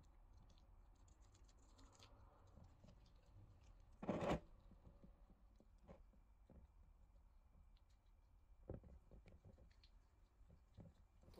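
Gloved fingers rub and scrape over greasy metal teeth.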